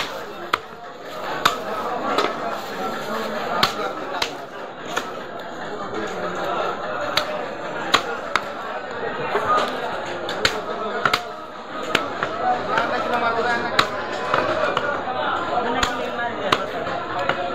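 A cleaver chops sharply into a wooden block.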